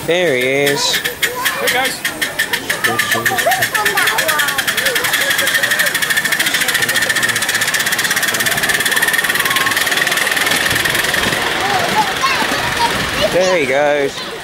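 A small steam locomotive chuffs rapidly as it pulls away.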